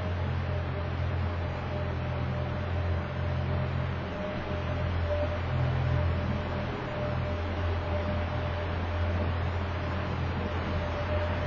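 An ice resurfacing machine's engine hums steadily across a large echoing rink.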